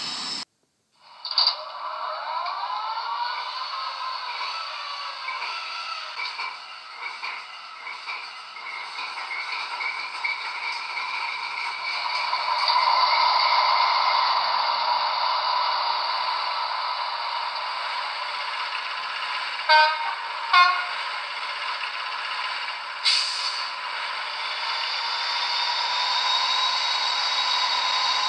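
A model diesel locomotive's engine rumbles and whines steadily through a small speaker.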